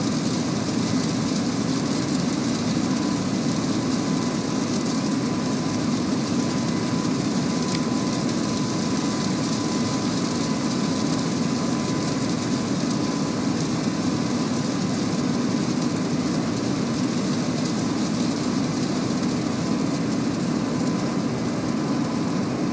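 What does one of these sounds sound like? Jet engines drone steadily from inside a cockpit.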